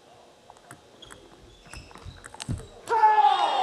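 Ping-pong paddles strike a ball back and forth.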